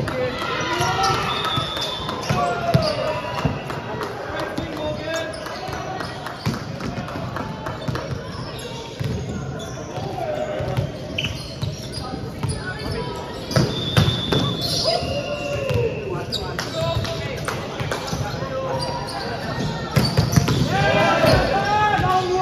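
Volleyballs thump on hands and bounce off a wooden floor.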